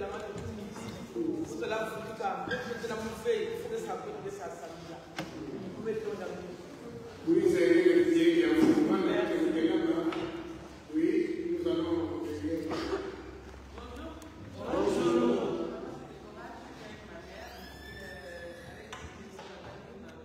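An elderly man preaches with feeling into a microphone in a large echoing hall.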